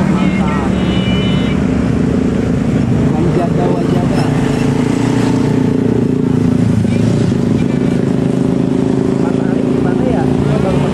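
A truck engine rumbles loudly as it climbs past close by.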